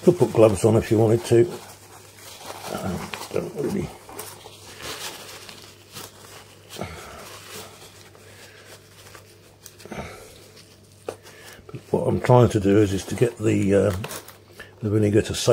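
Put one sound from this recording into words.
A paper towel rustles and rubs against plastic.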